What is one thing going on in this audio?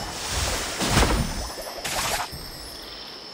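A magical whoosh bursts as a character's skill goes off.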